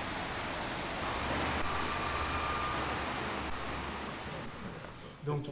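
Water rushes and churns over a low weir.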